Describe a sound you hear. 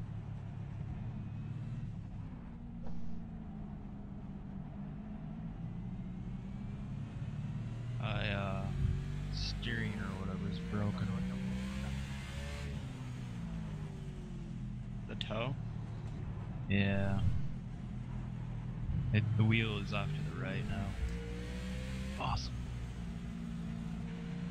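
A race car engine drones steadily, shifting pitch with the gears.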